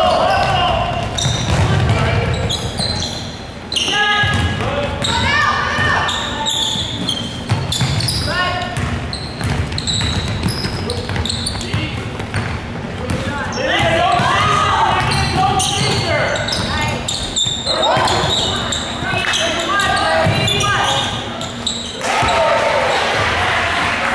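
Young women call out to each other in a large echoing hall.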